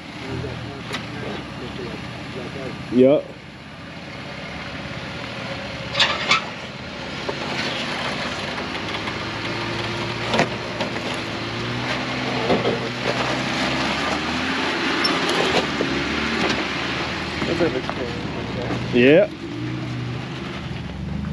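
An engine rumbles as a truck crawls slowly over rocks.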